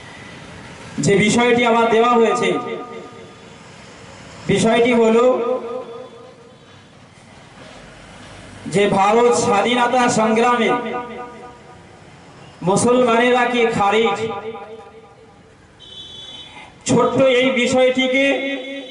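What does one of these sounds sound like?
A young man preaches forcefully through a loudspeaker in bursts, outdoors.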